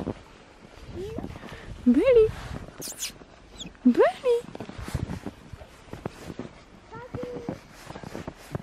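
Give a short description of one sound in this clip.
A young child squeals and calls out nearby.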